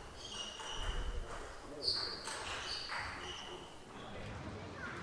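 Sports shoes squeak on a smooth floor.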